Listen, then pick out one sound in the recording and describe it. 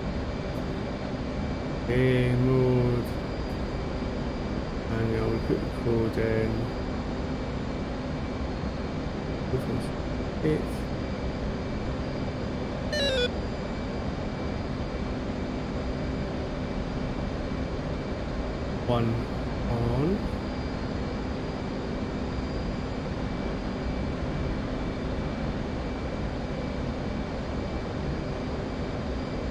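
A young man speaks briefly into a close headset microphone.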